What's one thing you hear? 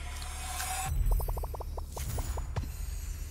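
A game egg cracks open with a crackling sound effect.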